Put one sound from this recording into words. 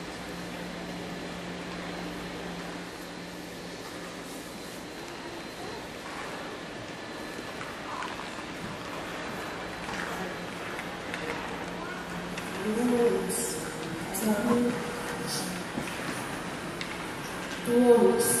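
A crowd murmurs softly in a large echoing arena.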